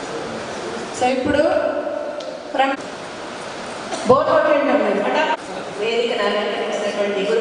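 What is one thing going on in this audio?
A middle-aged woman speaks with animation into a microphone, heard through a loudspeaker.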